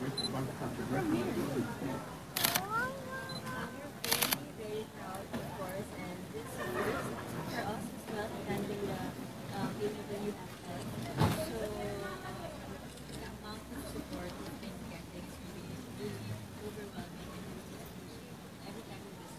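A young woman talks cheerfully into a nearby microphone.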